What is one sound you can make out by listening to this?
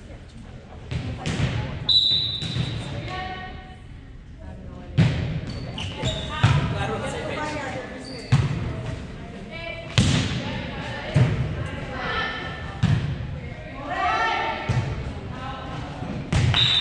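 A volleyball is struck with sharp slaps in an echoing gym.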